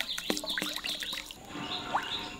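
Liquid pours and splashes into a pot.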